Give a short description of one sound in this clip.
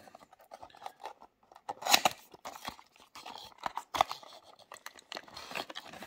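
A cardboard box flap scrapes open.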